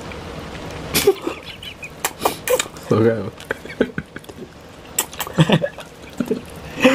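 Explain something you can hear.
Two men chew and crunch food loudly close to a microphone.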